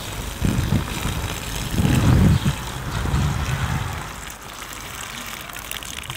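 Water pours from a bucket onto the ground.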